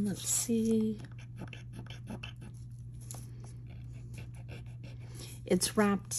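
A metal pendant rubs and scratches against a rubber pad.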